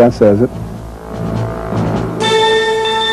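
A man speaks through an old recording.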